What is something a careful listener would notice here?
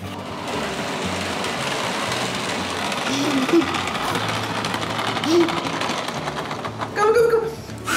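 A toy bus rolls along a track with a steady rumble.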